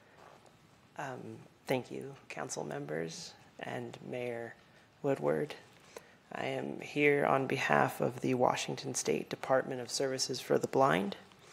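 A woman speaks steadily into a microphone.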